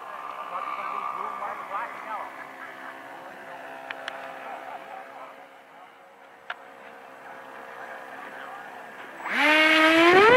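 A small jet engine whines steadily far off.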